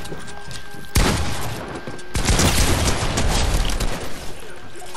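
Loud shotgun blasts boom in a video game.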